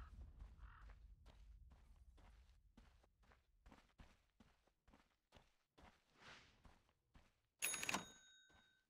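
Footsteps tread steadily on soft ground.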